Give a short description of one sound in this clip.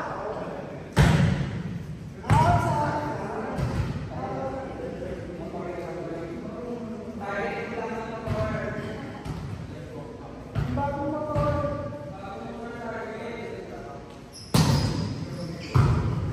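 A volleyball is struck with sharp slaps that echo through a large hall.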